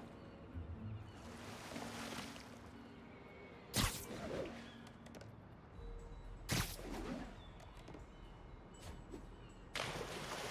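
Water splashes loudly as a swimmer plunges and moves through it.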